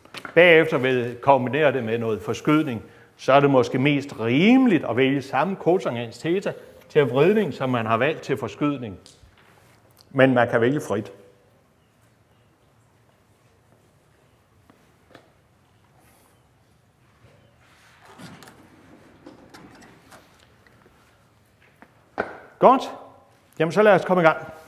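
An elderly man lectures through a microphone, speaking with emphasis.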